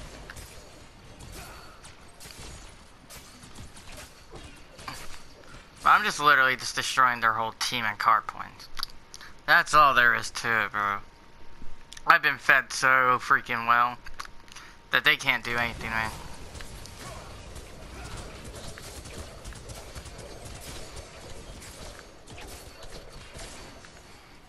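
Weapons clash and blasts burst in a fight.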